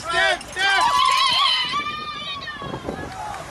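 A woman shrieks with excitement close by.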